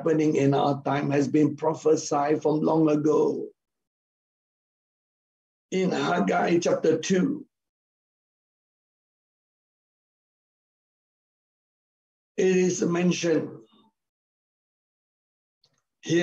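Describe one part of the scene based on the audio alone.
A middle-aged man speaks with animation over an online call, in short bursts with pauses.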